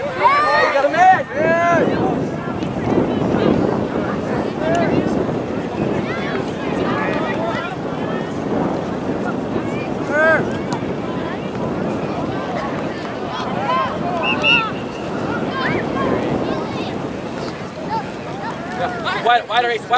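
Spectators on the sidelines shout and cheer from a distance outdoors.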